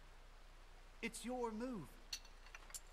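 A young man says a few words briefly into a nearby microphone.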